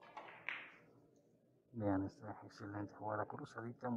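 Billiard balls click against each other and knock off the cushions.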